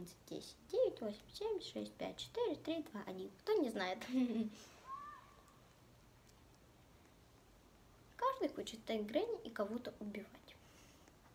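A young girl talks with animation close to a microphone.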